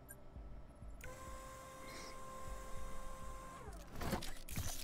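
A machine whirs and hums with a mechanical whine.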